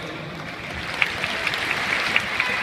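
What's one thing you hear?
A crowd claps.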